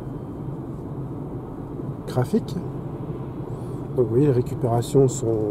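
A car's tyres hum steadily on the road from inside the car.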